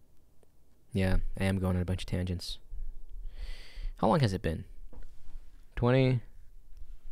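A young man speaks with animation, close into a microphone.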